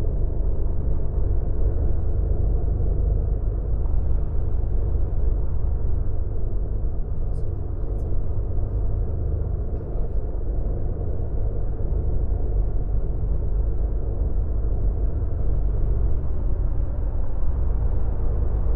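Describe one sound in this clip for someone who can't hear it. A bus engine hums steadily with a deep low rumble.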